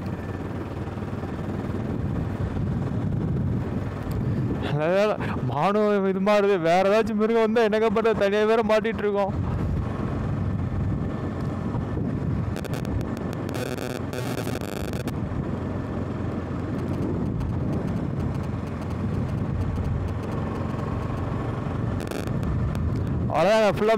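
A motorcycle engine runs steadily.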